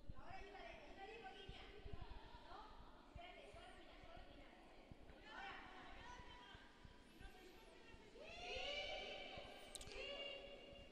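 Two young women talk quietly in a large echoing hall.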